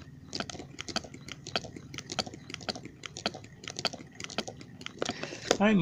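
A small spinning mechanism clicks and ticks rapidly and unevenly.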